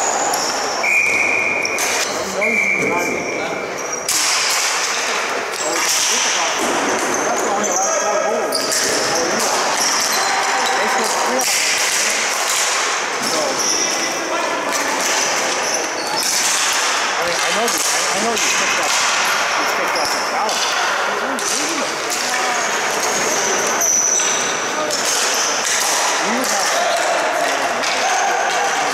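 Sticks clack and rattle on the floor as players run with the ball.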